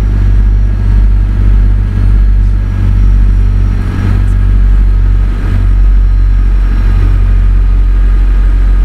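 A truck's diesel engine drones steadily at low pitch.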